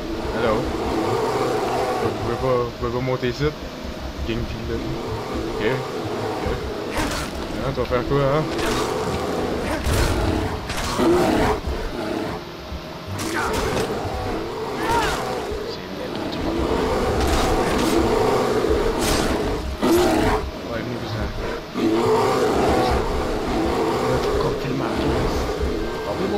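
Bears growl and roar.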